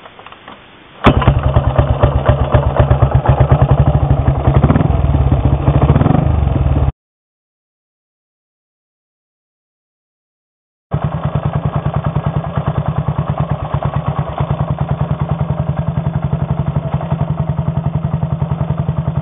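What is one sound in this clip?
A motorcycle engine starts and idles with a loud, steady thumping.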